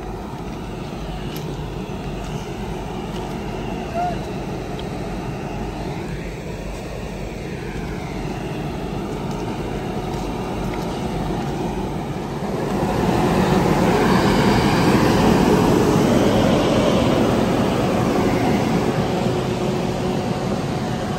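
A locomotive engine rumbles steadily close by, growing louder partway through.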